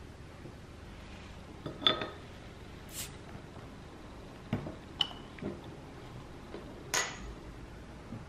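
A bottle cap pops off with a metal opener.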